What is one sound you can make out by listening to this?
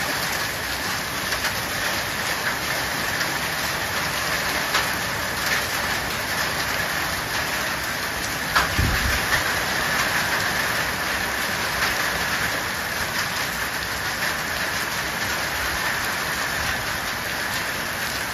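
Hail and heavy rain pelt down steadily outdoors.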